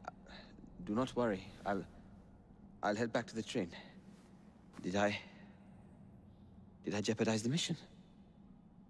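A young man speaks hesitantly and softly, close by.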